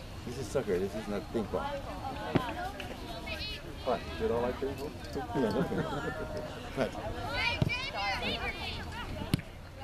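Young players shout and call out across an open outdoor field.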